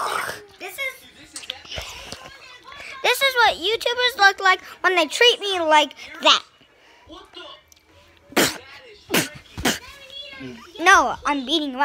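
A young boy talks with animation close to a phone's microphone.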